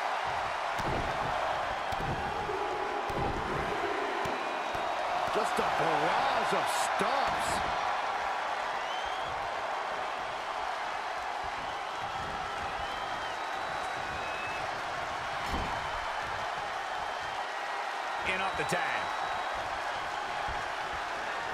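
Heavy thuds of bodies and blows land on a wrestling ring.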